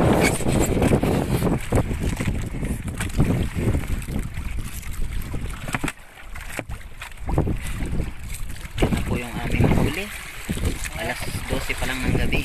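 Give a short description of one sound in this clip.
Fish slide and knock against ice in a cooler.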